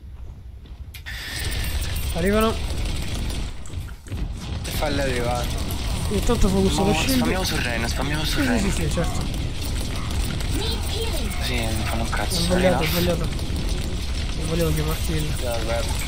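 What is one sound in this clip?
Gunfire and blasts from a game rattle loudly.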